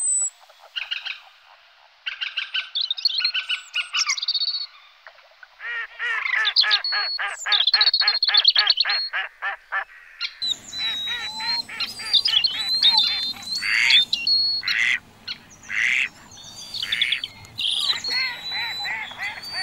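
Kingfishers call with shrill, rapid piping whistles.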